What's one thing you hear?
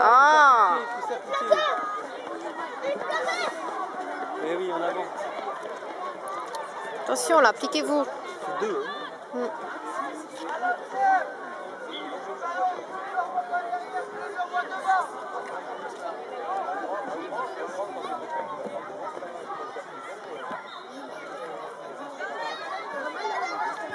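Spectators chatter and cheer nearby.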